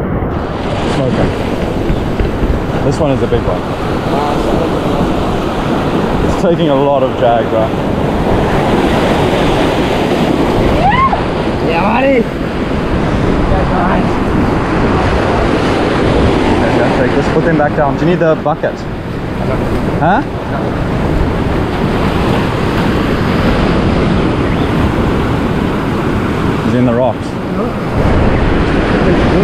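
Waves crash and wash over rocks close by.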